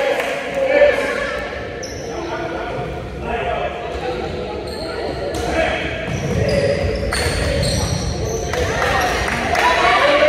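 Sneakers squeak sharply on a gym floor.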